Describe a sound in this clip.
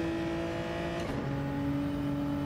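A racing car's gearbox shifts up with a brief dip in the engine's roar.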